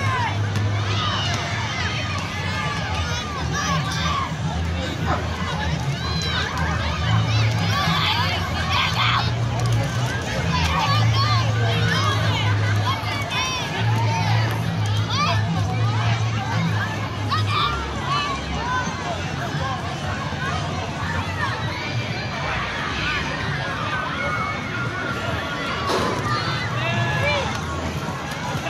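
A crowd of children and adults chatters and calls out outdoors.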